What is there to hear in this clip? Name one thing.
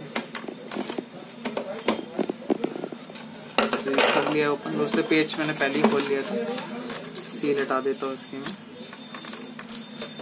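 A plastic device knocks and scrapes against a wooden table.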